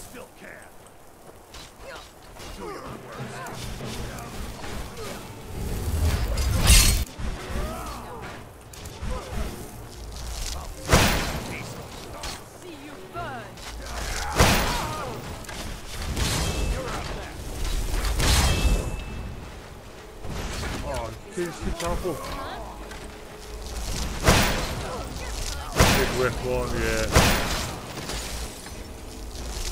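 Men shout and grunt in battle cries.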